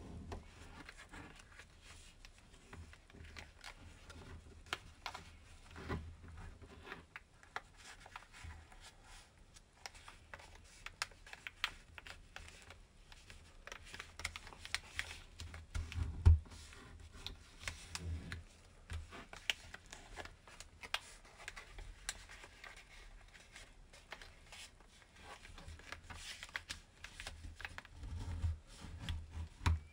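Fingers tap and press on paper against a hard surface.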